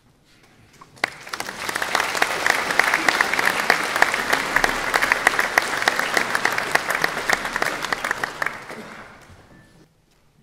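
An audience claps loudly in a large echoing hall, then the applause fades.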